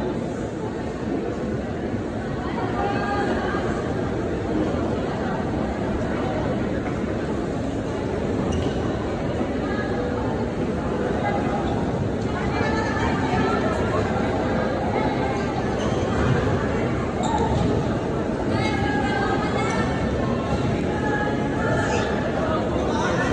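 A crowd cheers and chatters loudly in a large echoing hall.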